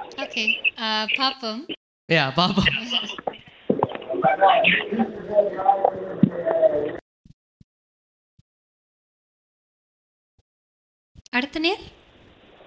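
A young woman talks cheerfully through a microphone.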